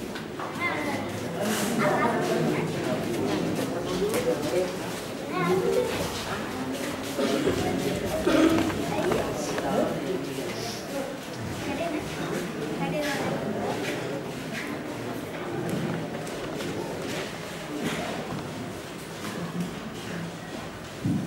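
A crowd of people murmurs and chatters in the background.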